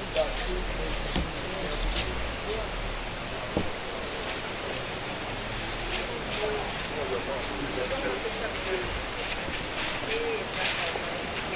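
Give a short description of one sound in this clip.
A crowd of men and women murmurs softly outdoors.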